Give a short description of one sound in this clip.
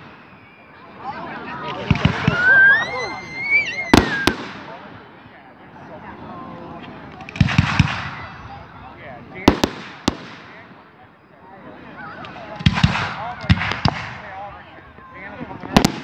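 Fireworks rockets whistle and hiss as they rise.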